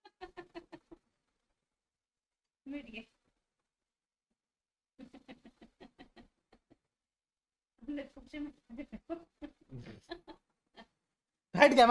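A young man chuckles softly.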